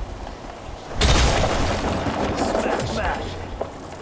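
Wooden crates smash and splinter loudly.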